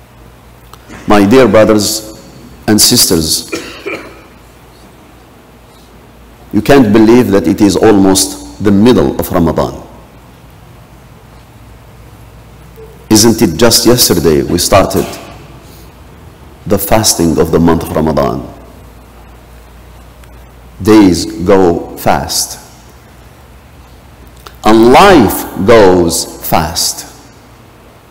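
A man speaks in phrases through a loudspeaker, echoing in a large hall.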